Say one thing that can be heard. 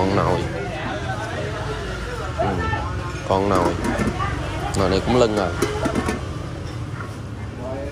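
A metal pot lid clanks as it is lifted and put back.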